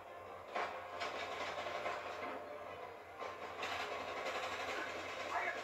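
Loud action game sounds with rushing, crashing noise play through a television loudspeaker.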